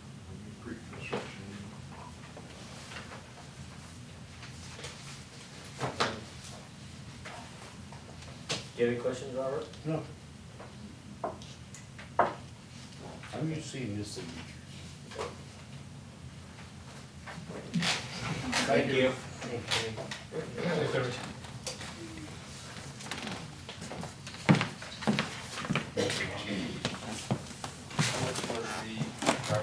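Elderly men talk calmly.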